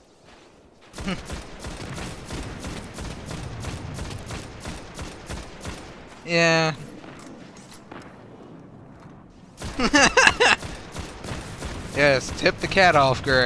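Gunfire rattles in rapid bursts.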